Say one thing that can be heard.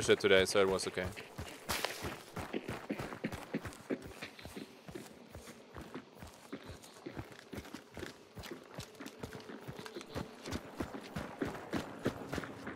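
Footsteps crunch steadily through grass and gravel.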